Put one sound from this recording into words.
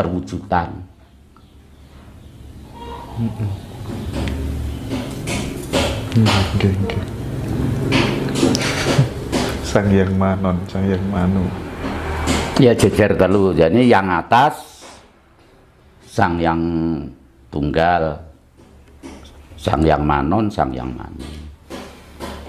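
An elderly man speaks calmly and with animation, close by.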